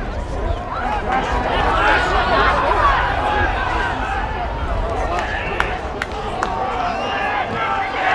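A crowd cheers in the distance.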